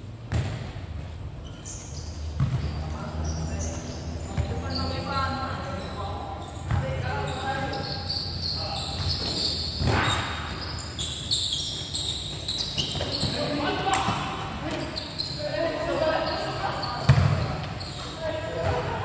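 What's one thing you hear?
Young players shout and call out across the court.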